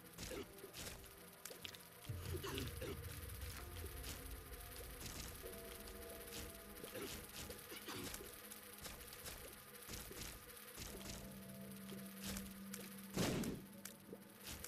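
Video game music plays steadily.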